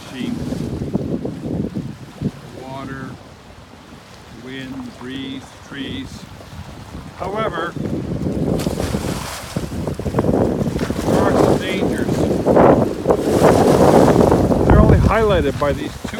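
Choppy lake waves slap against a concrete seawall.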